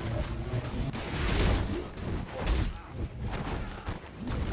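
A magic blast bursts and crackles as it strikes.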